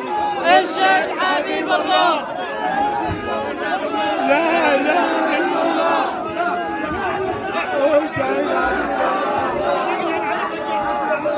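An elderly man wails and sobs loudly, close by.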